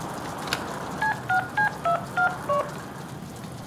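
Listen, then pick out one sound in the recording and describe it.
Phone keys beep as a number is dialled.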